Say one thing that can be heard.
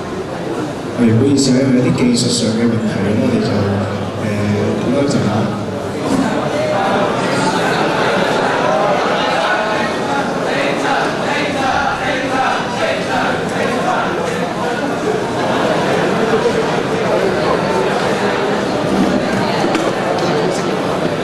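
Young men speak through a microphone, loud over the hall.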